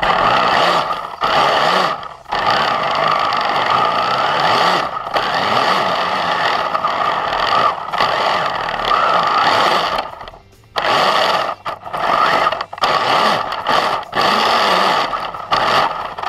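A small snowmobile engine roars close by, revving up and dropping off again and again.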